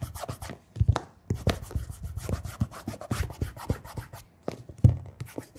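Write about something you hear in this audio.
Hands rub and brush against a leather shoe.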